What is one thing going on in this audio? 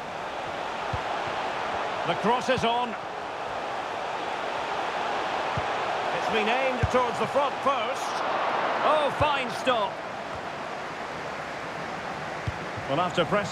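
A football is kicked with dull thumps now and then.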